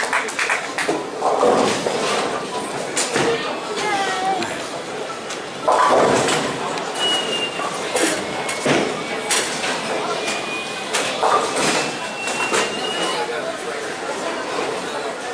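Bowling balls rumble down lanes in a large echoing hall.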